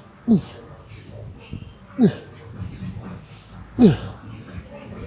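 A man grunts loudly with effort, again and again.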